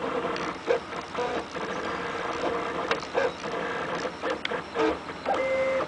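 Stepper motors whine in shifting tones as a 3D printer moves its print head.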